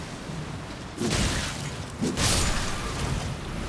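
A heavy blade whooshes through the air in a swing.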